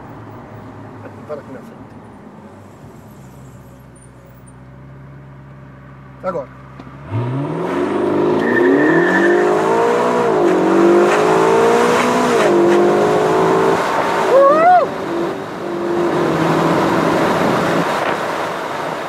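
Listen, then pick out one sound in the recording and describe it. A car engine idles, then revs hard and roars as the car speeds up.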